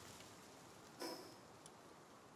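A short menu click sounds.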